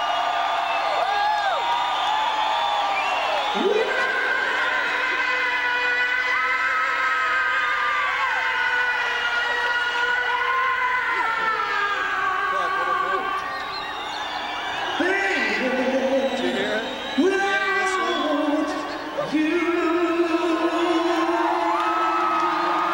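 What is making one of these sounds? A man sings loudly into a microphone over loudspeakers.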